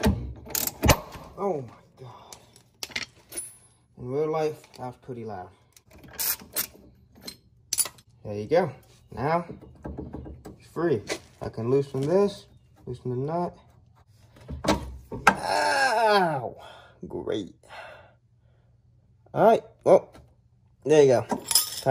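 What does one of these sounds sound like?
Metal tools clink and clatter close by.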